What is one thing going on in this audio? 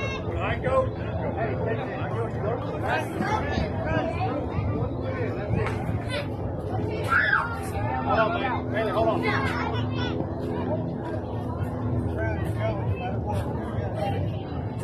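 Adult spectators call out and cheer nearby outdoors.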